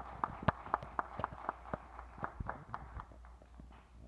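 A marimba sounds with quick struck notes.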